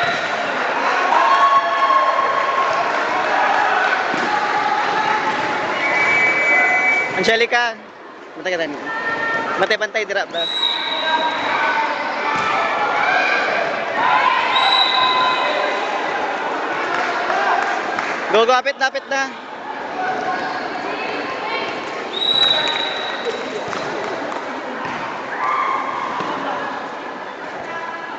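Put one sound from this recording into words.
A crowd of young people chatters and shouts in a large echoing hall.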